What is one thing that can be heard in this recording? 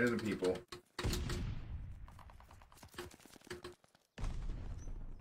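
Rifle shots bang with a booming tail.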